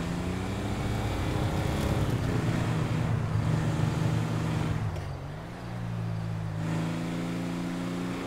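A car engine roars steadily, rising and falling as the car speeds along.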